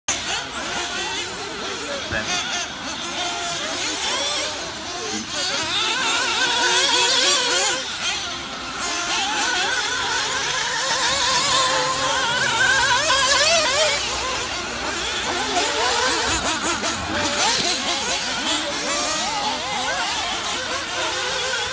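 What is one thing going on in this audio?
Small electric motors of remote-control cars whine and rise and fall in pitch as the cars race.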